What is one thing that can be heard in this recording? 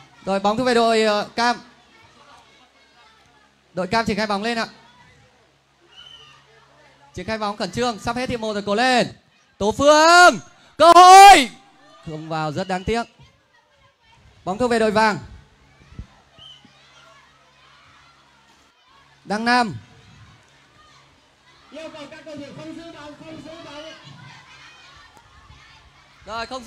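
Children shout and cheer excitedly in bursts.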